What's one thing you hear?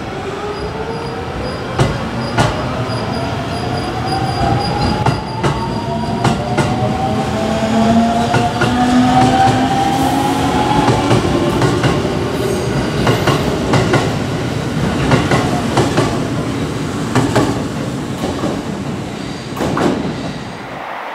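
A train rolls past along the tracks with a steady rumble.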